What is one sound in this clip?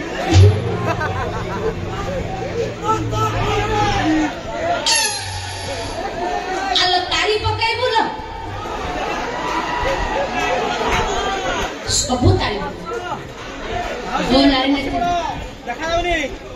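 A woman speaks loudly and with animation through a loudspeaker.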